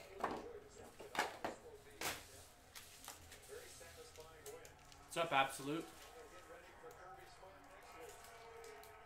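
Card packs rustle and tear as they are opened.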